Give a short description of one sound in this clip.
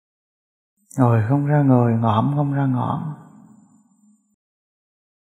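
A middle-aged man chants a short phrase in a deep, drawn-out voice, close by, and the sound echoes away.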